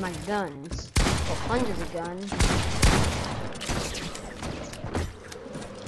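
A shotgun fires with loud, sharp blasts.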